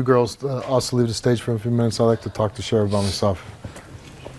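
A man speaks firmly and clearly into a microphone.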